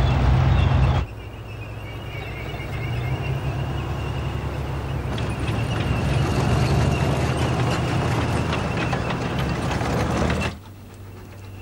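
A tank engine rumbles in the distance.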